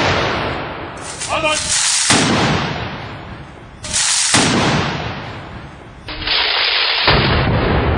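A group of soldiers stamp their boots in unison outdoors.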